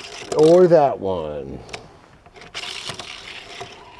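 A small toy car rolls across a wooden surface.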